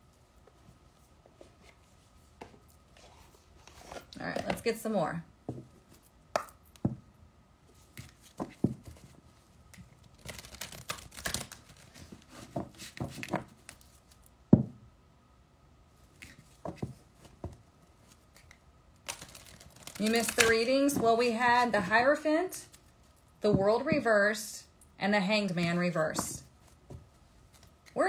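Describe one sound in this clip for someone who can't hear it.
Cards shuffle and riffle in hands.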